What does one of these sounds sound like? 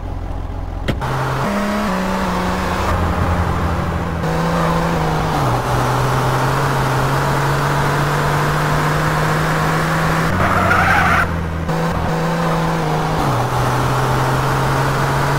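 A car engine starts and revs steadily, shifting gears as it drives.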